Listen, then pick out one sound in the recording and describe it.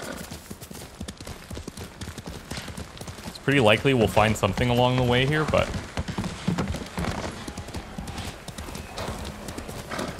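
A horse gallops, hooves thudding on a dirt path.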